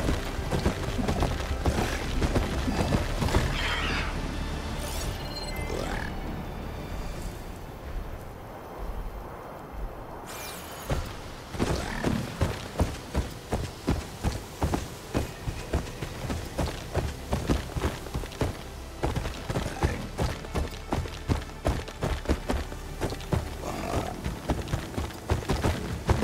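A mechanical beast's heavy metal footsteps thud in a quick, steady rhythm.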